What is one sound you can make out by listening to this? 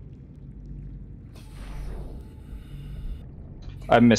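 Water sprays in through a leak.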